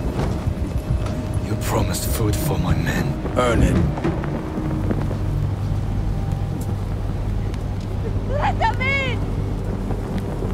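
A man speaks gruffly and with anger.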